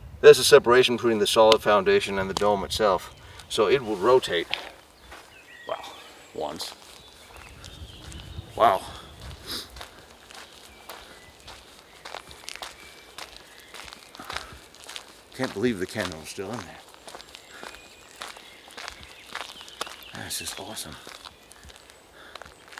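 Footsteps scuff on rough stone.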